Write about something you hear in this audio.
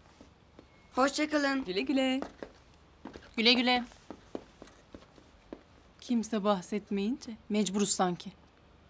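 A young woman speaks calmly and cheerfully nearby.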